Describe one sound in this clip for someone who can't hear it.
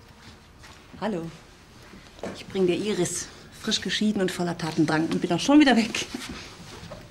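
A woman speaks cheerfully.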